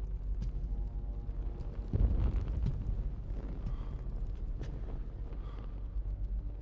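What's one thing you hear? Small flames crackle softly.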